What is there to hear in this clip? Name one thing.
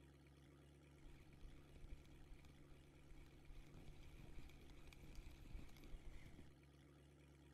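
A fishing reel clicks softly as line is wound in.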